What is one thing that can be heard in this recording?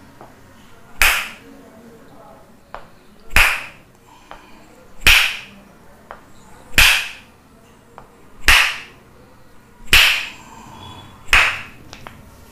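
Wooden mallets knock sharply against a man's back.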